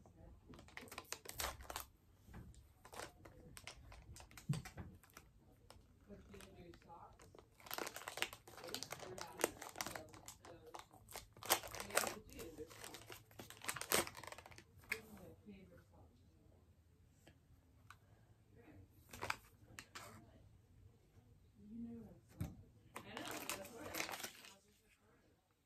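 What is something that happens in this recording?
Foil wrappers crinkle and rustle in someone's hands.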